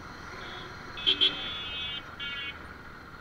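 A vehicle horn beeps several times nearby.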